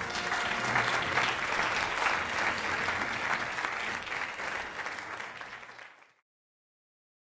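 A crowd applauds in a large hall, then the applause fades out.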